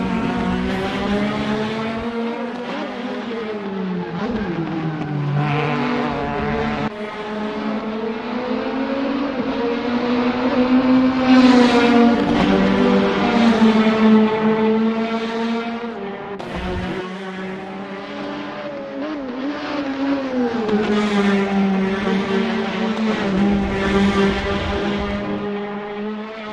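A racing car engine roars loudly, rising and falling in pitch as it revs and shifts gears.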